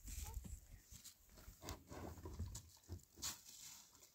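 Water pours into a plastic jug.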